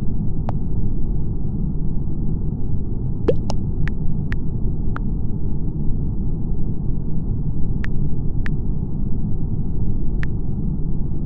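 Soft keyboard taps click now and then as someone types.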